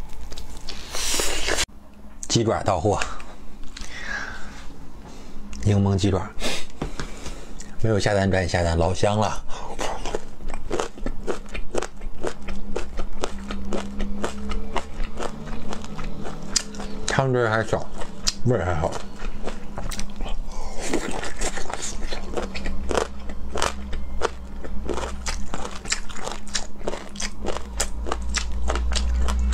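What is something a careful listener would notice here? A young man chews and slurps food wetly, very close to a microphone.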